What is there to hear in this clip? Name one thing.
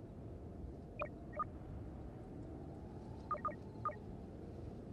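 Soft electronic clicks tick as menu options are selected.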